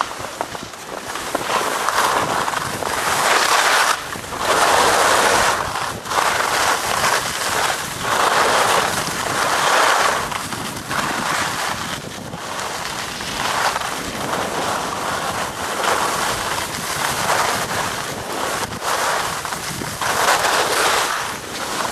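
Skis scrape and hiss over packed snow in repeated surges.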